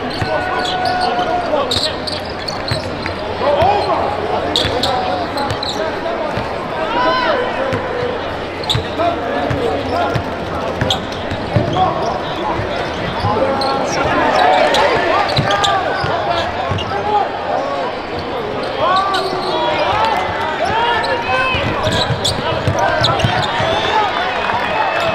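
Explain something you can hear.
A basketball bounces on the court floor.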